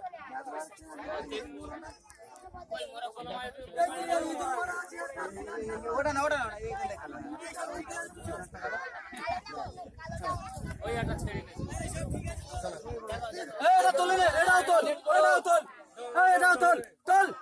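A crowd of men and children talk and call out close by, outdoors.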